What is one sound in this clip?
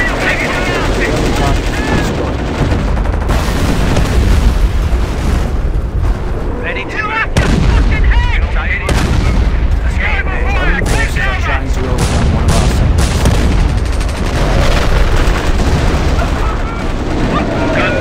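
Explosions rumble and boom in a battle.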